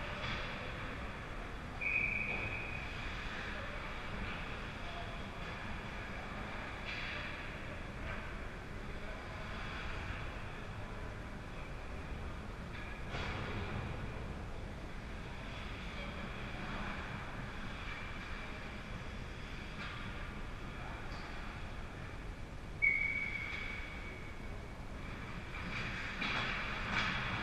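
Skates scrape and swish across the ice in a large echoing rink.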